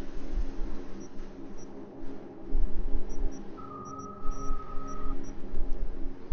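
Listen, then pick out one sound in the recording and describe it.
Short, high electronic beeps sound as menu items are selected.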